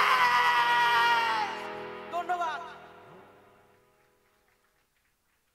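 A band plays loud rock music through a sound system, then fades away.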